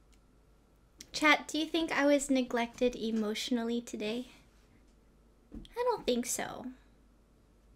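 A young woman speaks with animation into a nearby microphone.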